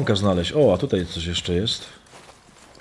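A man speaks animatedly into a microphone.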